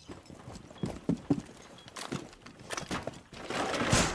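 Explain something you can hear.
Footsteps thud on a wooden floor overhead.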